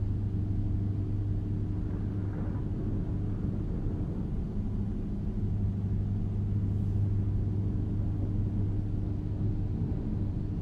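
A truck engine drones steadily at a low pitch while driving.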